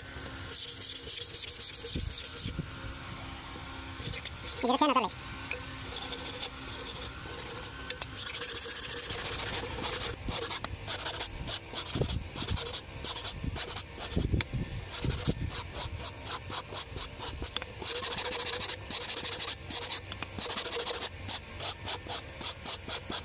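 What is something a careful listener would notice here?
A sanding pad scrapes rhythmically against wood.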